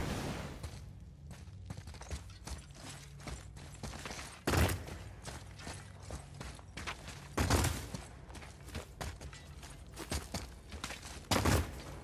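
Heavy footsteps crunch on stone.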